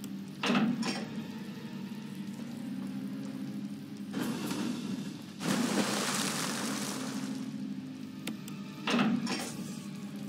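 A metal lever clanks as it is pulled.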